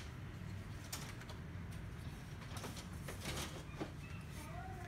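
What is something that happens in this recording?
Hands knock and click plastic parts of a printer.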